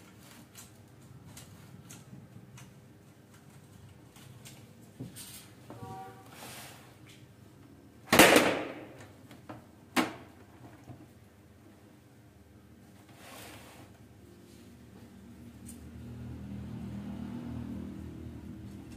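Plastic parts of a printer click and clatter.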